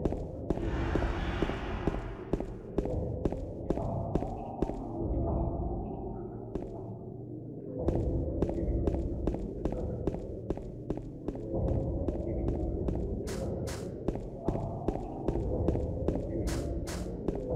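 Footsteps run quickly on hard pavement.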